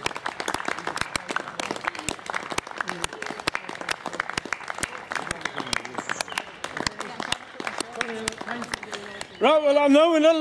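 People clap their hands outdoors.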